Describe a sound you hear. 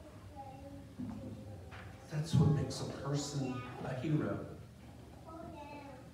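A man speaks at a distance in a large echoing room.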